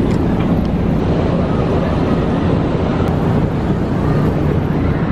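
Strong wind buffets the microphone high up outdoors.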